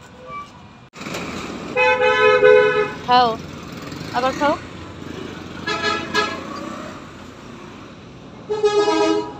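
A young child speaks in a high voice close by.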